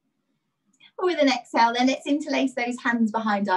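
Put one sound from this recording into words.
A young woman speaks with animation, close to the microphone of an online call.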